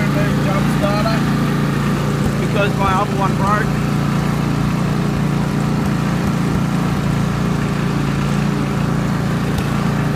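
A small engine drones steadily.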